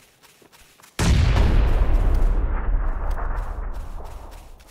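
A loud explosion booms nearby, then rumbles and slowly fades.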